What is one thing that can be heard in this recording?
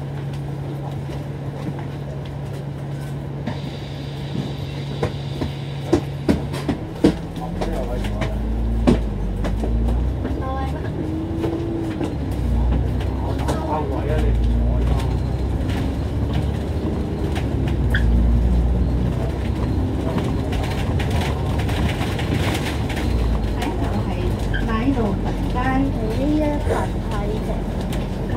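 A bus engine idles and then rumbles as the bus pulls away and drives along.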